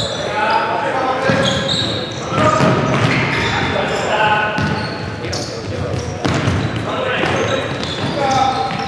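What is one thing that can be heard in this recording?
Sneakers squeak on a wooden sports floor in an echoing hall.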